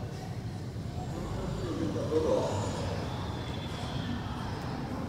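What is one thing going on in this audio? A car drives slowly past close by.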